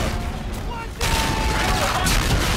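An automatic rifle fires a burst.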